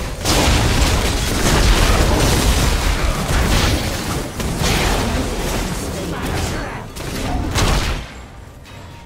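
Game spell effects blast and crackle in rapid bursts.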